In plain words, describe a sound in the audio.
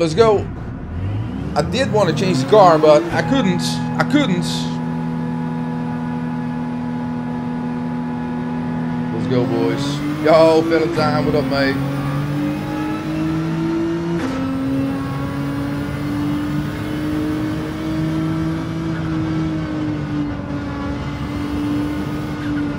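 A racing car engine revs up and then drones steadily through the gears.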